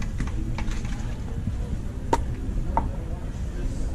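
A plastic bottle crinkles.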